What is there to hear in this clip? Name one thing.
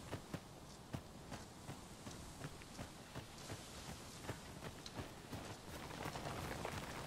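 Footsteps crunch quickly on a gravel path.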